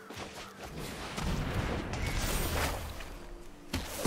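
A magical whoosh sweeps past.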